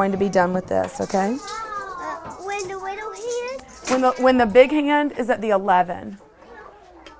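A woman speaks calmly and gently to a child nearby.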